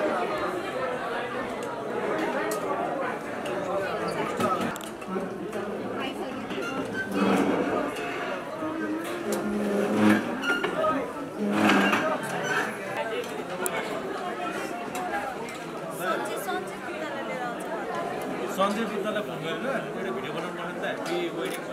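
A crowd of men and women chatters in an echoing hall.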